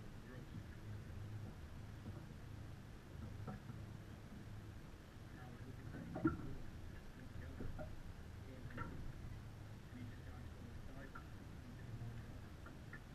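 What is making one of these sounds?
Water laps against a boat's hull.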